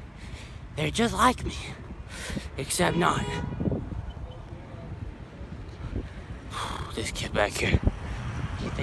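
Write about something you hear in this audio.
A young man talks close by, with animation.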